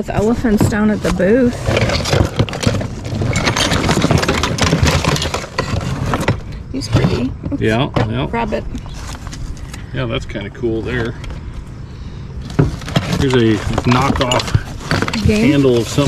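Items rustle and clatter as hands dig through a cardboard box.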